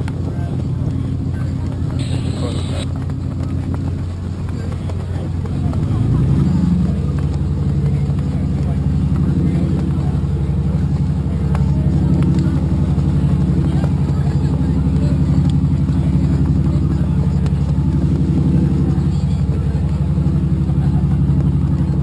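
A boat engine drones steadily and picks up speed.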